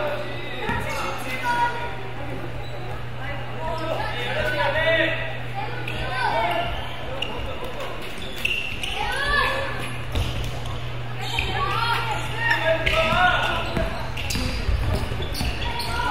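A basketball bounces on the court in quick thuds.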